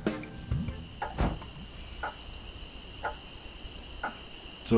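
Swords clash with sharp metallic clinks.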